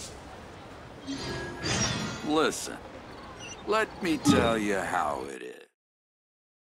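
A bright game jingle plays with rising chimes.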